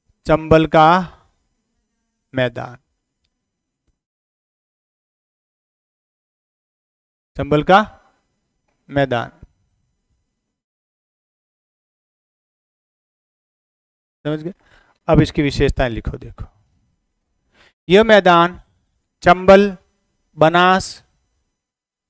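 A middle-aged man speaks calmly into a clip-on microphone, in short bursts with pauses.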